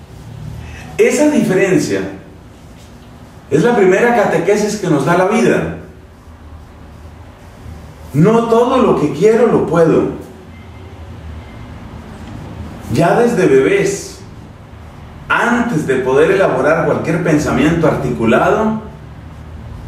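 A man speaks with animation through a clip-on microphone, in short bursts with pauses.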